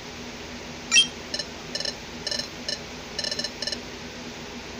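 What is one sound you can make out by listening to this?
Quick little beeps chirp as game text types out.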